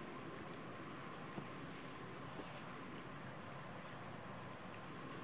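A cat chews and laps food with soft wet smacking sounds close by.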